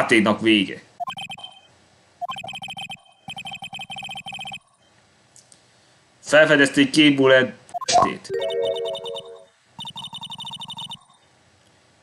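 Rapid electronic blips chatter in bursts.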